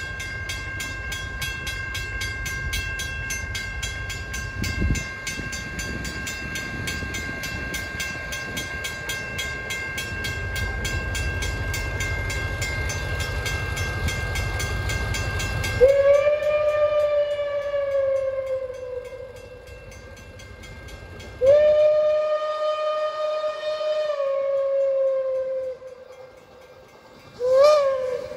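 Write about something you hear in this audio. A railway crossing bell rings steadily and quickly.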